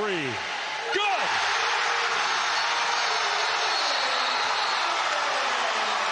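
A large crowd erupts in loud cheering.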